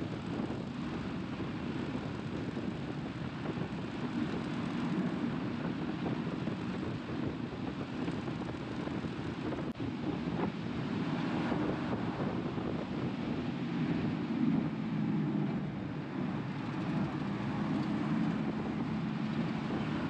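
A heavy diesel engine rumbles steadily up close.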